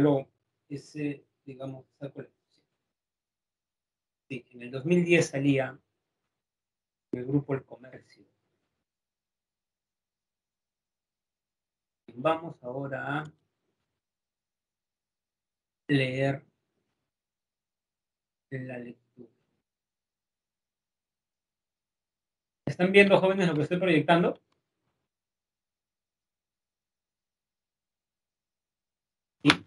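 A young man speaks calmly over an online call, in short phrases with pauses.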